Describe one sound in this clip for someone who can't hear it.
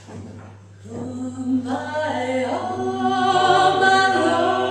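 A woman sings a steady tune.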